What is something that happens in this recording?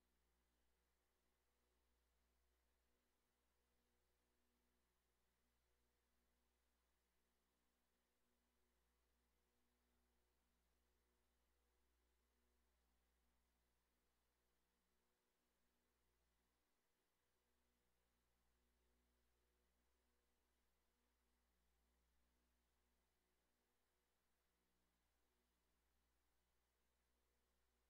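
A bike trainer whirs steadily.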